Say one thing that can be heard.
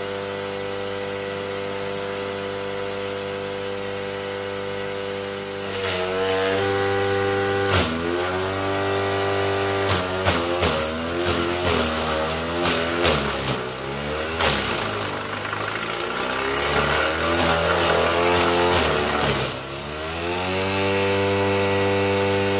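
A motor-driven chopper hums steadily.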